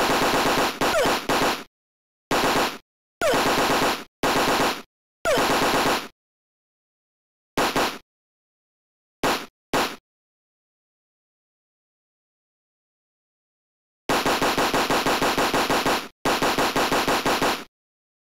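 Rapid electronic game sound effects burst out in quick runs of punches and hits.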